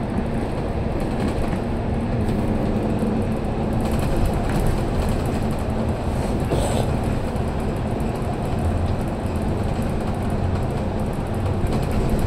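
Traffic roars and hisses along the tunnel walls.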